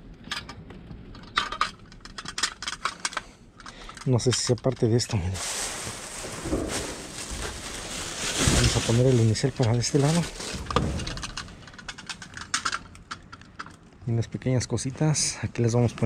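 A hard plastic container crackles as hands squeeze and turn it.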